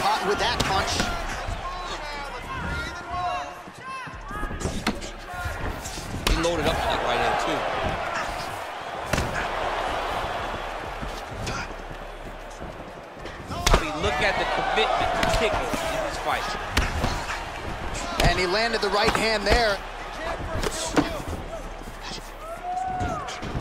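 Punches and kicks thud against bodies.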